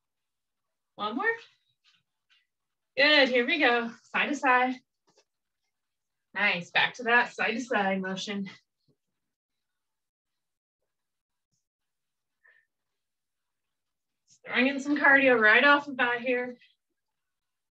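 A young woman speaks calmly and clearly close by, giving instructions in short phrases.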